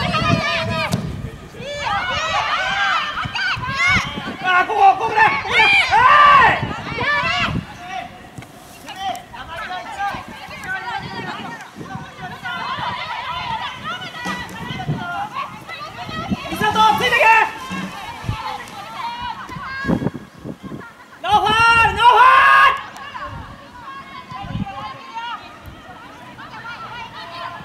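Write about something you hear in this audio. Young players shout and call to each other outdoors, some distance away.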